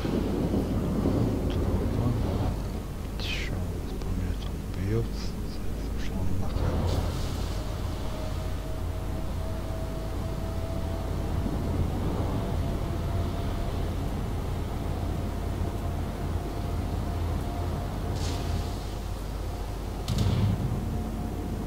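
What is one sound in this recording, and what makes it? Heavy naval guns fire with deep booms.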